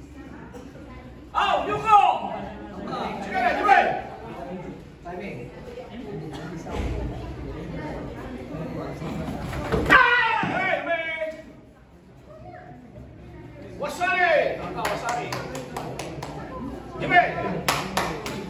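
A man referee calls out commands loudly.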